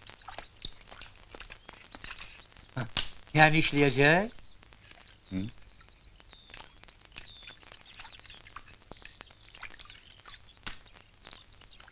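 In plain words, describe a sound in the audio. Water splashes softly as hands move in it.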